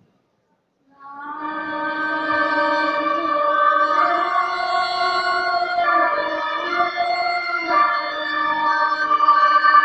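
A group of monks chants in unison.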